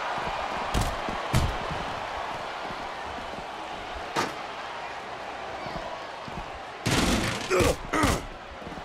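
Heavy thuds of blows land in a fight.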